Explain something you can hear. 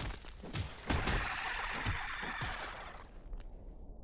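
A magic spell bursts with a bright whooshing blast.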